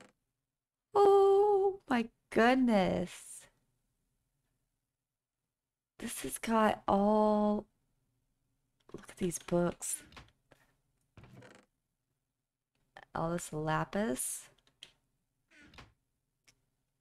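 A young woman talks animatedly and close to a microphone, in short bursts with pauses.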